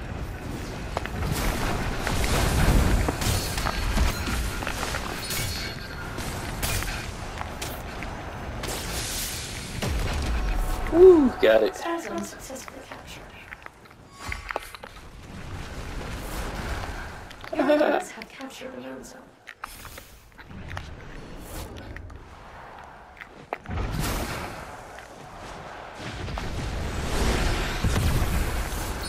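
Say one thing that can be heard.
Magic blasts whoosh and crackle in quick bursts.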